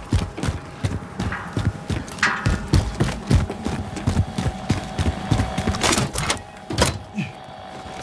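Footsteps thud quickly on hard ground.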